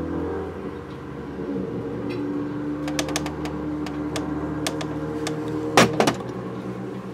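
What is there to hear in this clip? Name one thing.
A small metal tool scrapes and taps against a metal ring.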